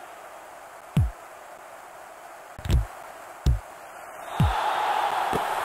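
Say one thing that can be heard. A ball is kicked with short, dull thuds, several times.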